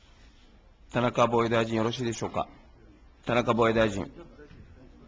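A man speaks firmly into a microphone.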